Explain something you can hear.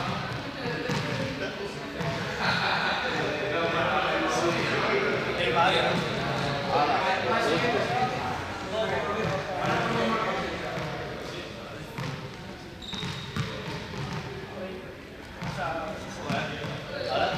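A young man talks calmly in a large echoing hall.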